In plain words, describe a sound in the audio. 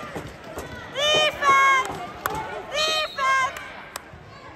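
Young voices cheer loudly in short bursts.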